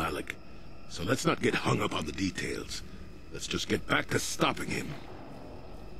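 An elderly man speaks calmly and gruffly.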